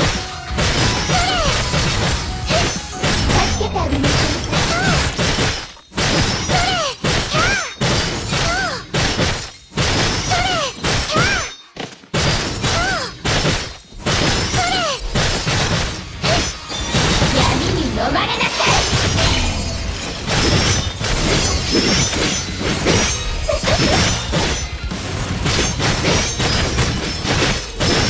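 Heavy blows thud and crash again and again.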